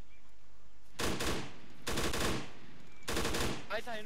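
A rifle fires single sharp shots.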